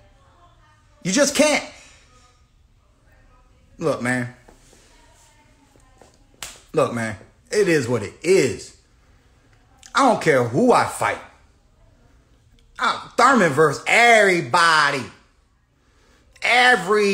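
A young man speaks with animation close to a phone microphone, in bursts with pauses.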